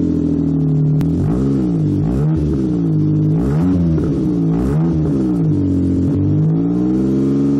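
A car engine revs up and down several times.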